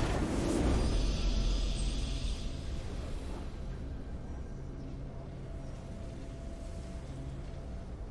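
A triumphant fanfare swells at the end.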